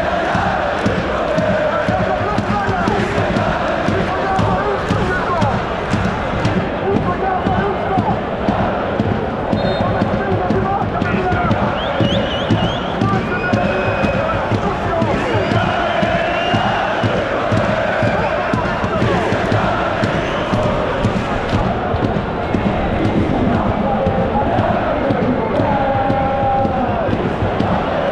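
A huge crowd of fans sings and chants loudly in a large echoing stadium.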